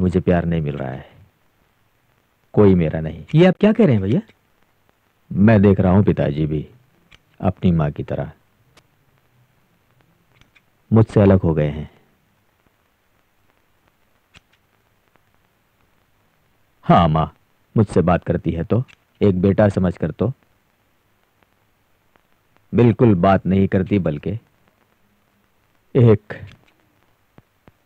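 A man speaks calmly, close by, in short bursts.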